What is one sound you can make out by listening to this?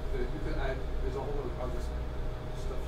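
A man speaks with animation in a large room.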